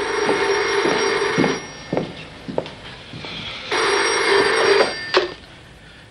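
A telephone bell rings in bursts.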